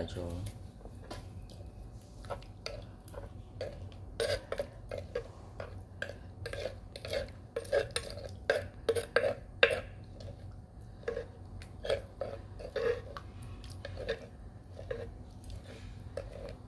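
A metal spoon scrapes and clinks against the inside of a stone mortar.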